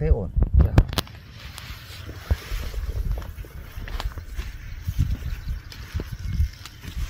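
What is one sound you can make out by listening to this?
Wind blows outdoors and rustles leaves.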